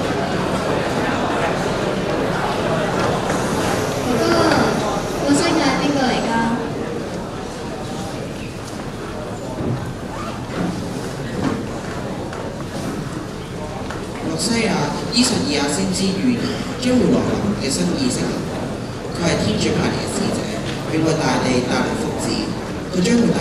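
A young man speaks on a stage, heard through a microphone in a large hall.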